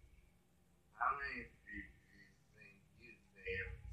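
A man speaks loudly through a loudspeaker.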